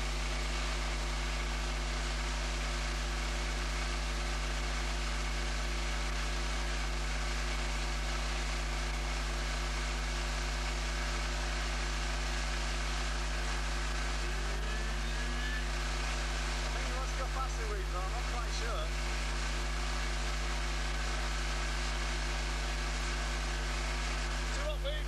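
An outboard motor drones steadily up close.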